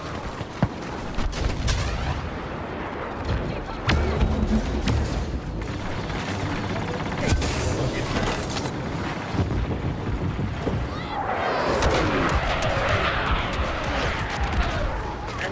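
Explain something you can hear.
Explosions rumble nearby.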